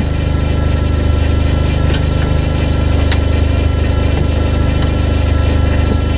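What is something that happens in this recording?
A car engine idles with a steady, throbbing rumble close by.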